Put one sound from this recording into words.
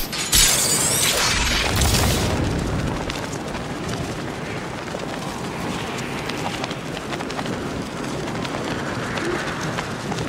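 A cape flutters and flaps in the wind.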